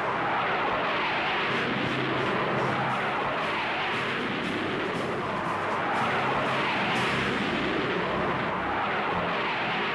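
Jet engines roar loudly and steadily.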